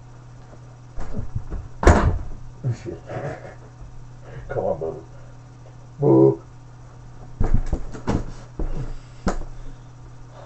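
Push-up handles knock and clatter on a hard floor.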